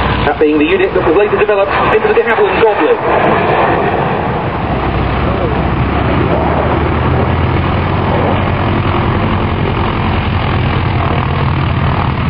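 A jet aircraft roars overhead with a steady rumbling whine.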